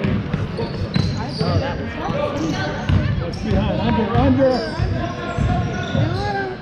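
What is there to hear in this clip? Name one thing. Basketball shoes squeak sharply on a wooden court in a large echoing gym.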